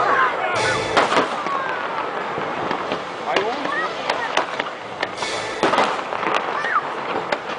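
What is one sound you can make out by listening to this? Fireworks bang and boom in sharp bursts.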